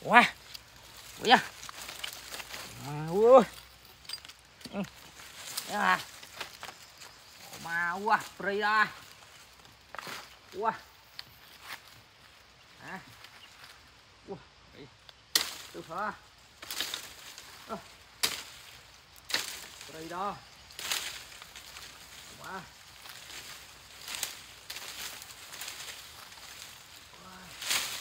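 Parrots squawk and chirp close by.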